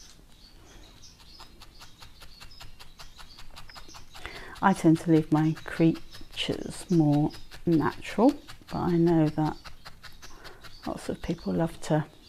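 A felting needle pokes rapidly into soft wool with faint taps.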